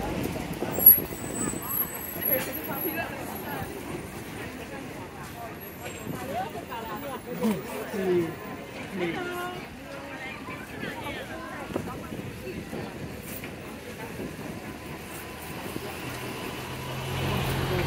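Men and women chatter around a busy outdoor street market.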